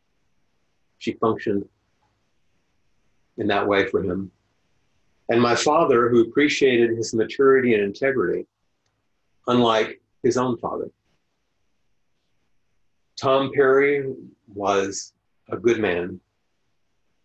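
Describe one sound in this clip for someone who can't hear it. An older man speaks calmly and slowly into a close microphone, with long pauses.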